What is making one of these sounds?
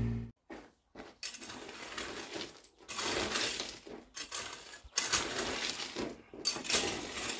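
A rake scrapes over loose soil and gravel in short strokes.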